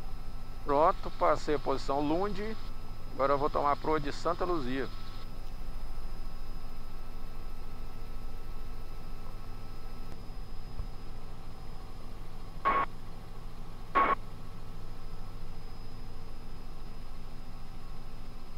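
A helicopter engine and rotor drone steadily.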